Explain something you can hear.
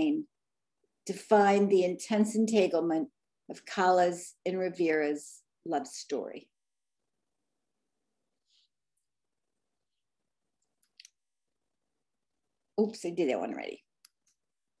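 A woman speaks calmly through an online call microphone, as if giving a talk.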